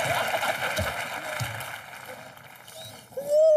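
A young woman laughs heartily.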